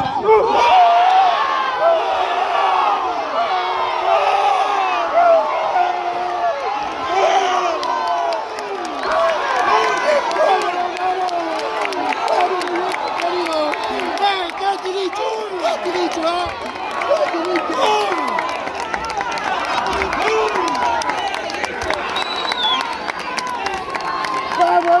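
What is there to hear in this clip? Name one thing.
A crowd of spectators cheers and shouts excitedly nearby, outdoors.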